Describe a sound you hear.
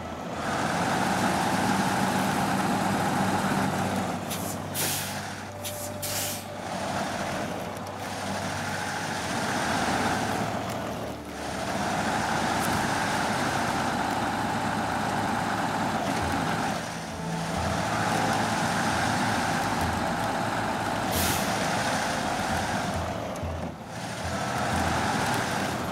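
Tyres crunch through snow.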